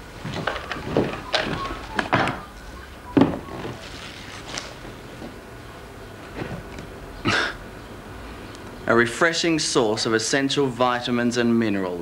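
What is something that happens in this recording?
A carton of juice rustles and thumps as it is handled.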